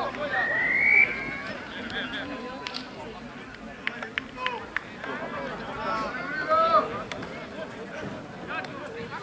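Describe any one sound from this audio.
Spectators shout and cheer outdoors from across a field.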